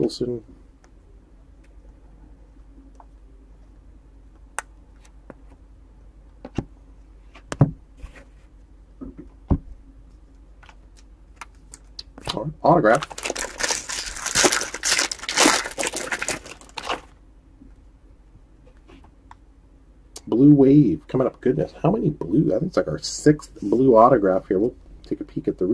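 Trading cards shuffle and click against each other.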